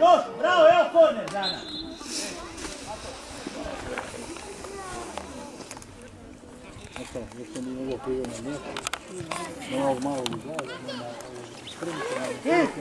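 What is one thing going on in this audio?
Men talk with animation nearby, outdoors.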